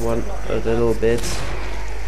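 A welding torch hisses and crackles.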